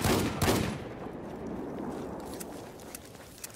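A loud blast booms close by and rumbles away.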